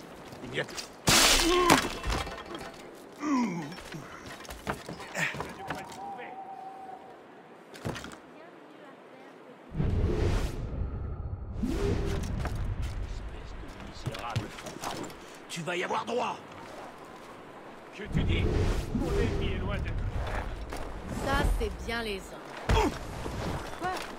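Men grunt and shout during a scuffle.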